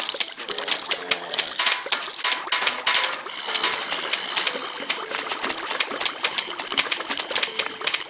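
Peas splat against cartoon zombies in quick succession.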